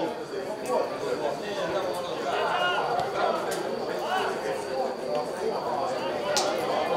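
Young men shout and call out to each other outdoors across a wide field.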